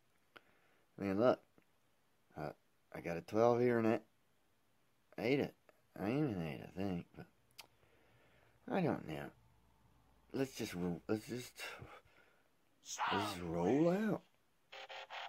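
A man talks with animation in short bursts, close to a microphone.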